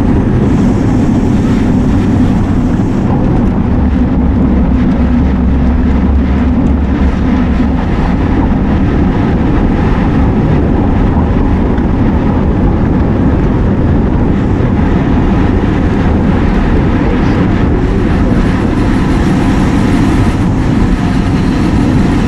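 Wind rushes loudly over a microphone on a fast-moving bicycle.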